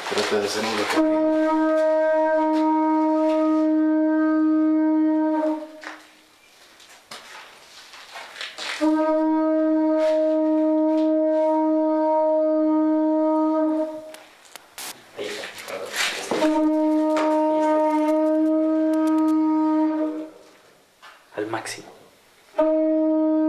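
A handheld device gives out a steady, buzzing electronic tone in long bursts that stop and start.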